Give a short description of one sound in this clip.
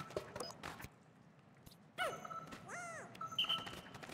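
A menu clicks open with a short blip.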